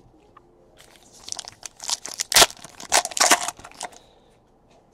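A foil trading card pack is torn open.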